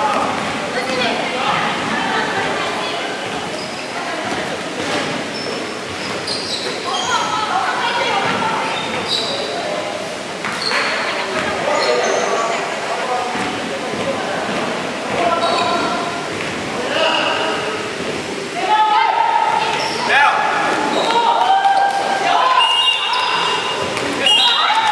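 Many young people chatter and call out in a large echoing hall.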